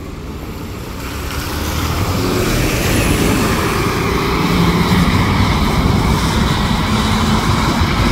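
Tyres swish on a wet road as a bus drives past.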